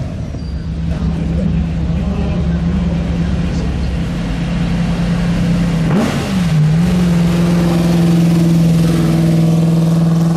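A race car engine roars and revs up as the car pulls away.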